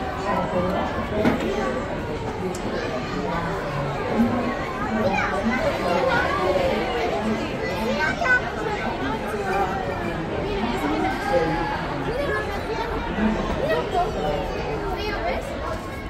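Many people chatter indoors nearby.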